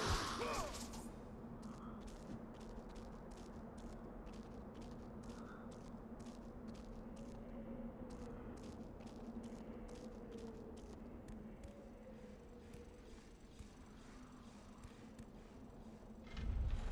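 Hands tap and scrape rhythmically on rock.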